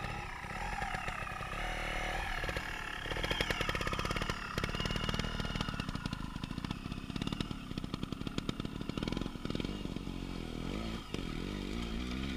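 A dirt bike revs loudly and rides away into the distance.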